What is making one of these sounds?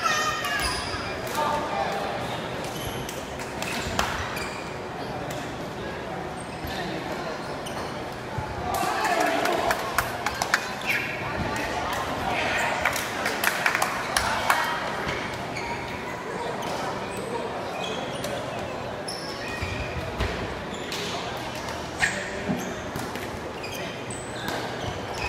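Men shout and call to each other across the court.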